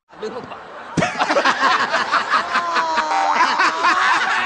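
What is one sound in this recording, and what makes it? An elderly woman laughs loudly.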